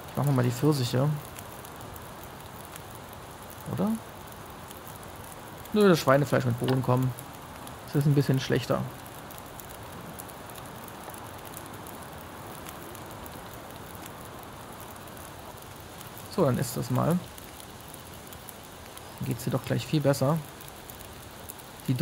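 A campfire crackles steadily.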